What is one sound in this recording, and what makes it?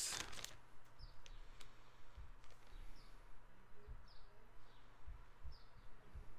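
Small items click and rustle under a man's hands.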